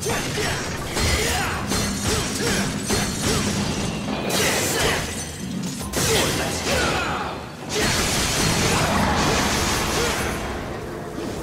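Sword blows slash and clang in a rapid flurry.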